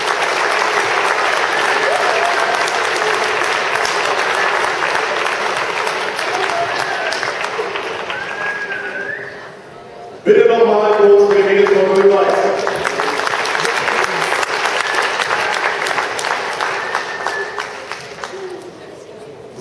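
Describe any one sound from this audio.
Many children chatter and shout in a large echoing hall.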